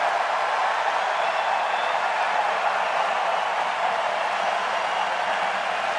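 A large crowd applauds and cheers loudly in a big open stadium.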